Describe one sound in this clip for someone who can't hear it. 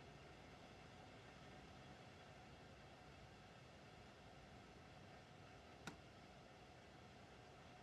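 A train's motor hums steadily as it rolls along the track.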